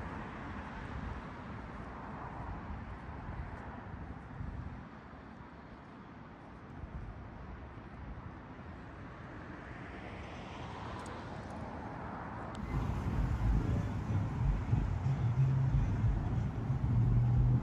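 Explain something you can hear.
Wind blows outdoors, rumbling strongly at times.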